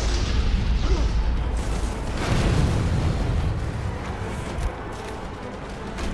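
Fire roars and crackles.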